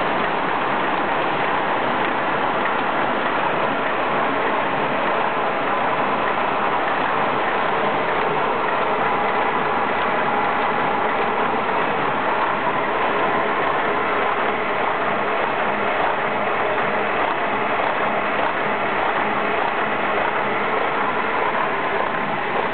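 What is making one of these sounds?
Paper sheets rattle along conveyor rollers.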